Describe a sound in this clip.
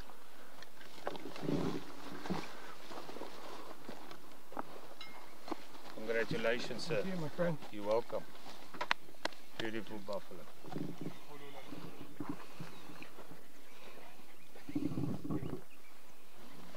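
Men talk calmly close by.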